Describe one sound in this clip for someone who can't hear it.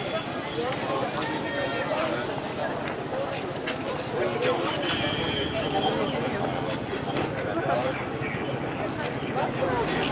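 Hooves clop on pavement as a troop of horses moves along.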